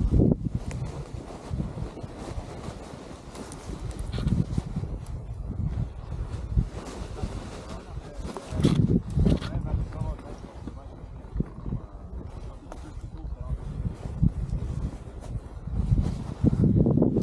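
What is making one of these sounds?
Boots crunch on snow.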